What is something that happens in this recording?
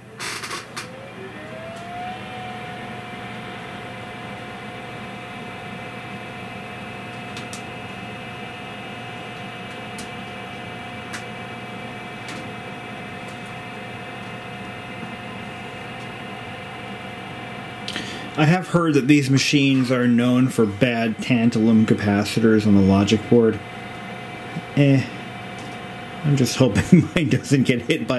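An old computer starts up with a whine that rises in pitch and then holds as a steady hum.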